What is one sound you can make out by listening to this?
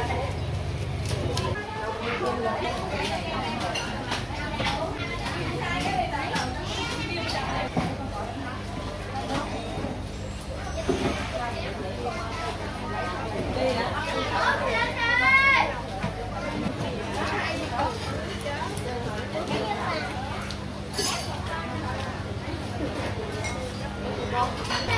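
Many people talk in a busy crowd, with voices near and far.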